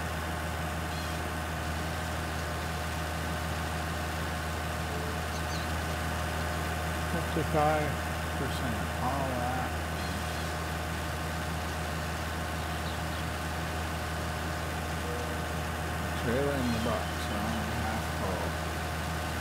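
A forestry harvester head saws and grinds through a tree trunk.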